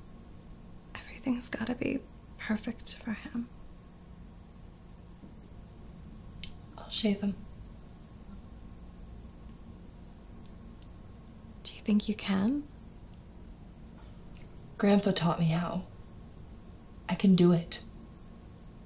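A young woman answers softly and hesitantly, close by.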